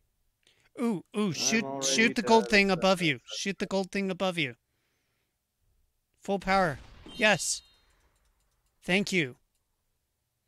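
A man speaks with animation through a microphone, in short bursts.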